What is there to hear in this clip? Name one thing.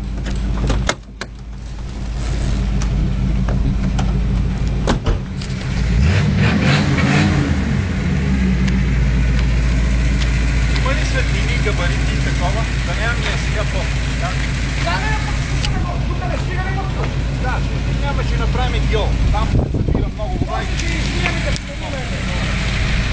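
A car engine idles with a deep, throaty rumble close by.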